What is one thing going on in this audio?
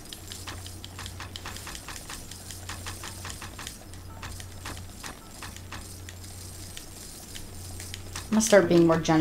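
Short soft clicks tick repeatedly.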